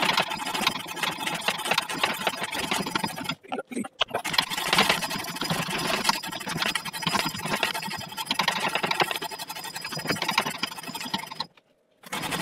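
Metal parts clink and scrape close by.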